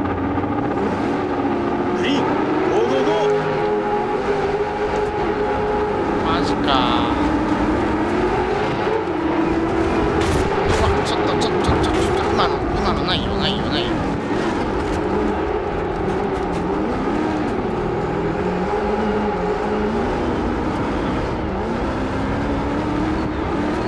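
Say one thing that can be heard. A race car engine roars and revs up and down throughout.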